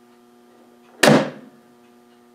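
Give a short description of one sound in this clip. A relay clicks loudly once.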